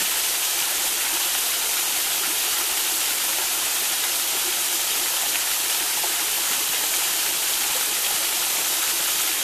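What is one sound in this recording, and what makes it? Water trickles and splashes steadily over rocks close by.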